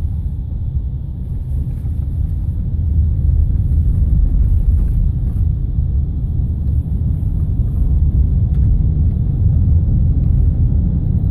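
Tyres rumble over a rough, bumpy road.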